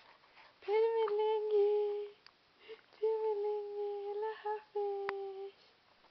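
A baby makes long, steady cooing wails up close.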